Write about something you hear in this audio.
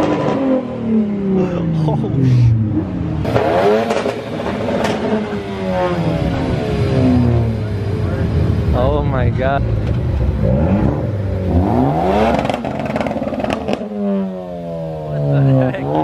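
A car engine revs loudly, its pitch rising and falling again and again.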